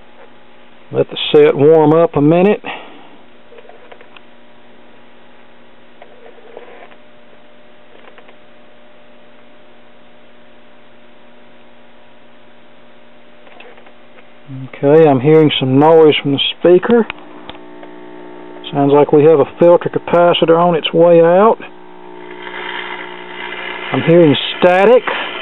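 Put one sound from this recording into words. An old valve radio plays a voice through its small loudspeaker, in short bursts.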